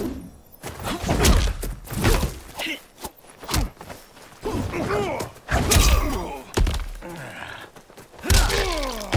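A woman grunts and cries out as she is hit.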